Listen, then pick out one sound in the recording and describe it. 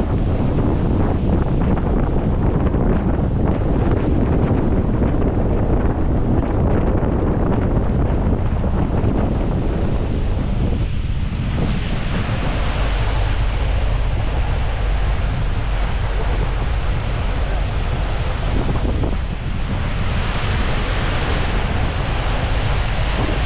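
Heavy rain patters on a car's windscreen.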